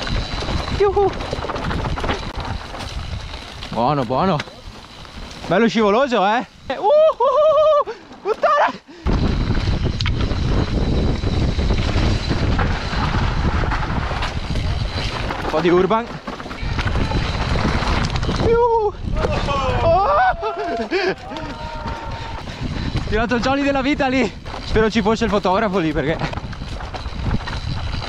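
Mountain bike tyres rumble and rattle over a rough dirt trail.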